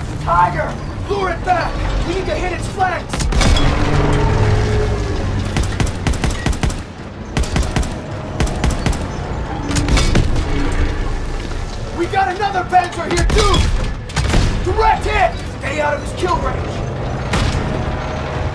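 Gunfire and explosions boom and crackle.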